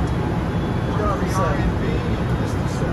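A man speaks briefly over the roar.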